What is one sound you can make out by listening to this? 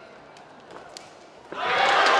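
A body slams onto a padded mat.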